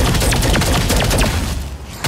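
A fiery beam sizzles and roars.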